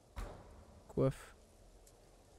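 A young man speaks a brief word close to a microphone.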